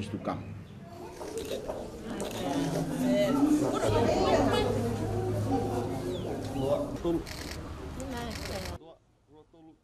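A group of women and children laugh and chatter together.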